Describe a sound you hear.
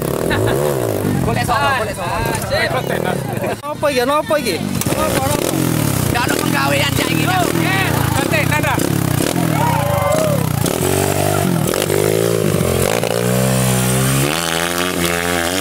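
A dirt bike engine revs loudly nearby, rising and falling.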